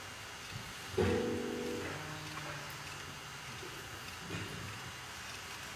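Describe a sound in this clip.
A keyboard plays sustained notes.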